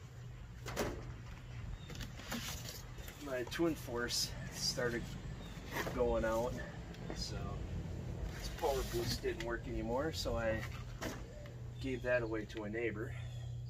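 Cardboard scrapes and rustles as it is handled.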